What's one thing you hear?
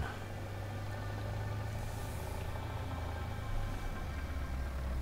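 A truck engine drones steadily at low revs.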